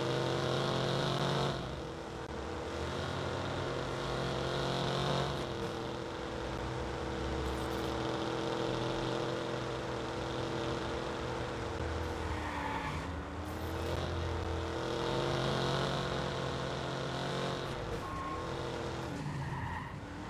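Tyres roll on a road surface.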